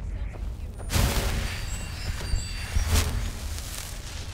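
A magic spell crackles and bursts.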